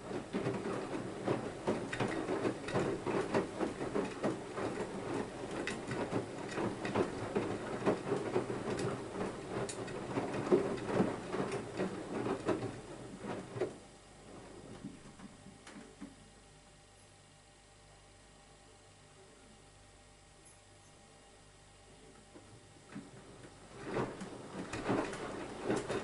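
Water and laundry slosh and splash inside a tumbling washing machine drum.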